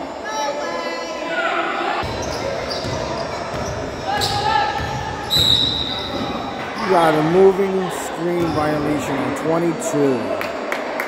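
Spectators chatter in a large echoing gym.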